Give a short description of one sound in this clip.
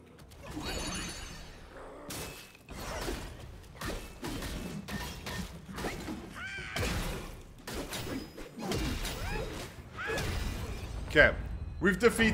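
Blades clash and strike in quick bursts.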